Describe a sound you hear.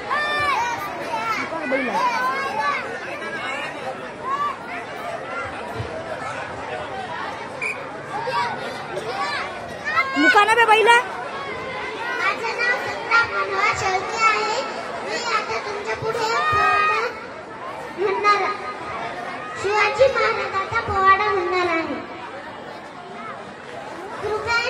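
A young boy sings into a microphone, heard through loudspeakers.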